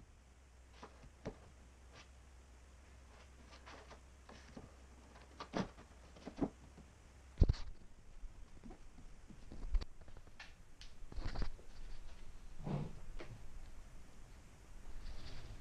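Light objects knock and tap on a table.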